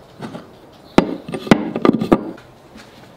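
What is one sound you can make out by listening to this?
Metal cutters clunk down into a wooden tray.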